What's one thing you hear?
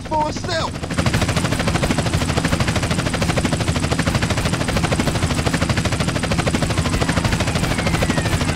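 A helicopter's rotor thumps loudly and steadily overhead.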